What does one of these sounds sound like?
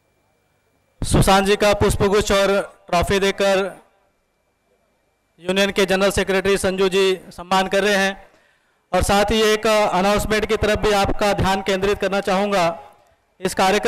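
A man speaks forcefully through a microphone and loudspeakers.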